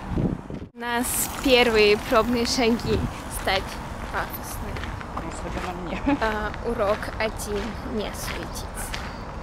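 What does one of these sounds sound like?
A young woman speaks close to a microphone, cheerfully.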